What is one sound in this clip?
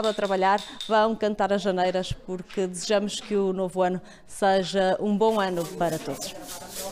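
A young woman speaks clearly into a microphone, reporting.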